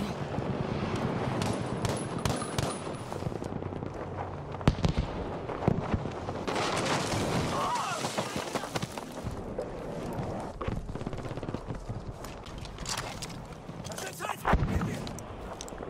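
Battle rumbles and booms steadily.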